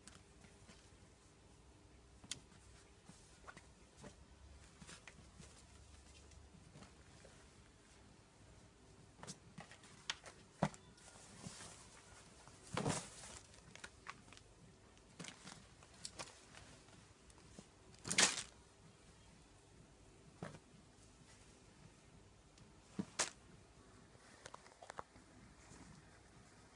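Clothes rustle and flap as they are laid down one on top of another.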